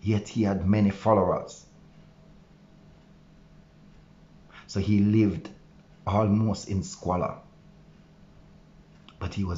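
A man speaks close to the microphone, calmly and with pauses.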